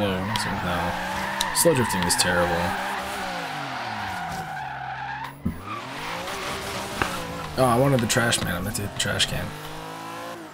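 A car engine revs high and changes pitch as the car drifts.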